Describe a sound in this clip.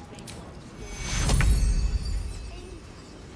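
A magical blast booms and rumbles.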